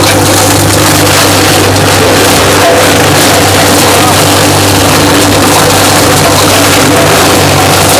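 A chaff cutter crunches and shreds fresh stalks.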